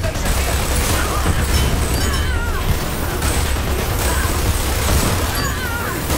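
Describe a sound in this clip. A minigun fires in a rapid, rattling burst.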